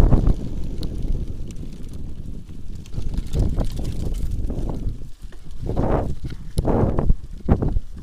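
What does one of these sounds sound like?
Bicycle tyres roll and bump over a rough dirt trail.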